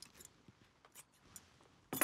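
Scissors snip.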